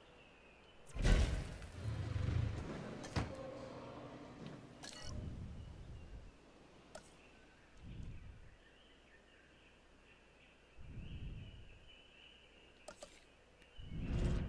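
Short interface clicks and chimes sound as menus open and close.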